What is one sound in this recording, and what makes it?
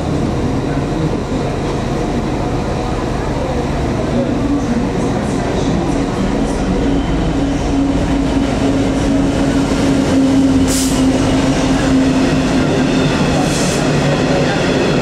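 A diesel locomotive engine rumbles and drones as it approaches and passes close by.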